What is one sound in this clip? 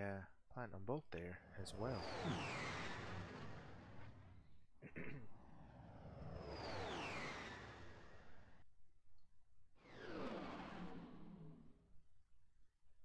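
A spaceship whooshes past with sweeping, falling tones.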